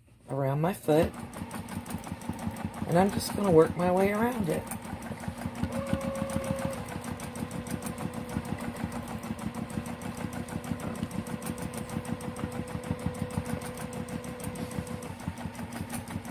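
A sewing machine runs with a rapid, steady stitching rattle.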